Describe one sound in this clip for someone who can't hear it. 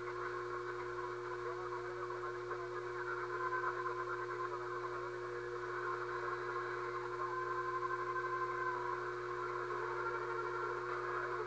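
A radio receiver hisses and crackles with static through a small loudspeaker.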